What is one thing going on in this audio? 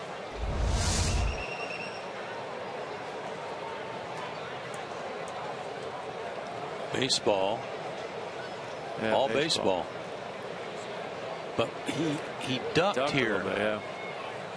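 A large crowd murmurs in a big open stadium.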